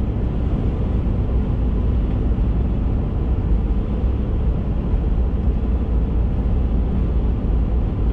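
Wind rushes against the car.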